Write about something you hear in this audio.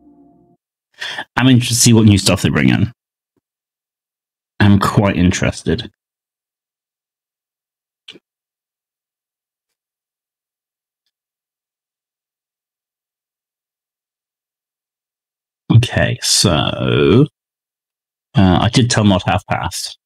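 A young man talks into a close microphone with animation, in short bursts with pauses.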